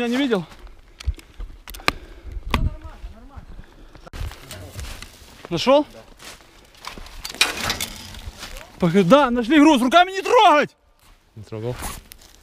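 Footsteps crunch on leaves and snow as a man runs.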